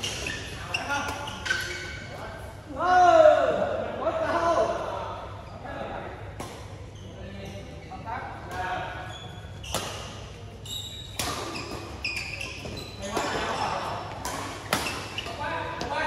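Sounds echo as in a large hall.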